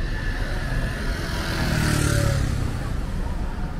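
A motorbike engine passes close by.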